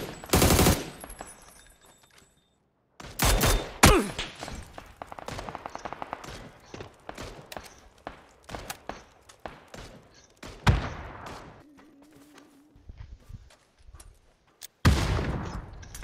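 Rifle shots ring out loudly with a short echo.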